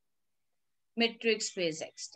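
A woman speaks calmly through an online call microphone.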